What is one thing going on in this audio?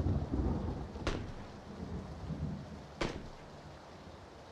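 Heavy footsteps thud on a stairway.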